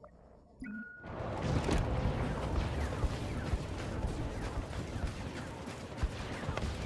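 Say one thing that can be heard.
Battle noise of gunfire and explosions rumbles loudly.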